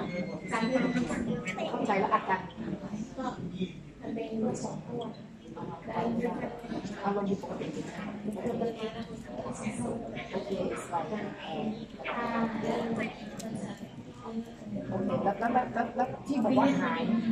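A young woman speaks into a microphone, heard through a loudspeaker in a hall.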